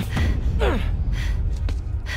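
Blows land with dull thuds in a scuffle.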